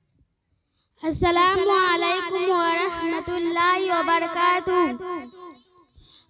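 A young girl sings a melodic chant through a microphone, echoing over a loudspeaker.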